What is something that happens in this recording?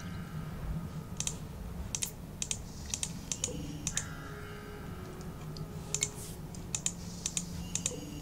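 A magical sparkle chimes softly.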